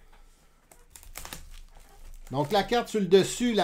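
Plastic wrapping crinkles as a box is handled.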